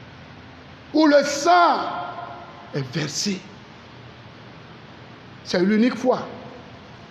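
A man shouts and sings out loudly into a microphone, in short bursts.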